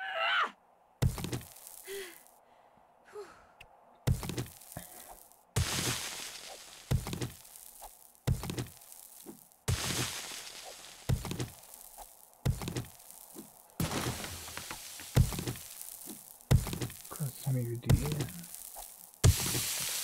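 A tool strikes rock.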